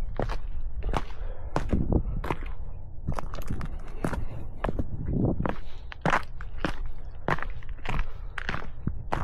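Footsteps crunch on dry gravel and stones at a steady walking pace.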